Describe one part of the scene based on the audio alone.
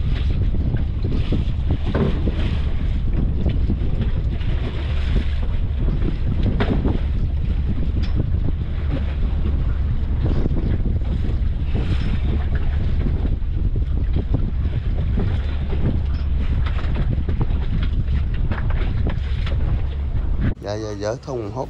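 A boat engine rumbles steadily on open water.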